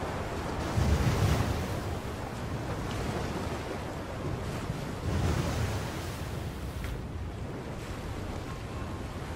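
Strong wind blows steadily outdoors.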